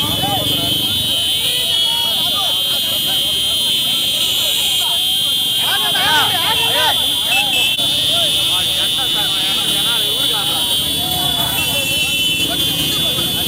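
Whistles shrill loudly through the crowd.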